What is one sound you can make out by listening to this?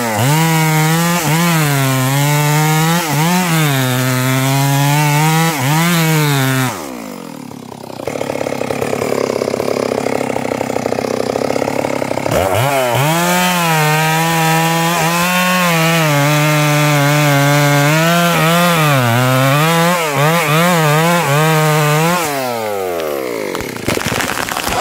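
A chainsaw engine revs loudly, rising and falling, then idles and stops.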